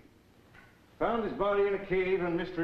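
A younger man speaks calmly, close by.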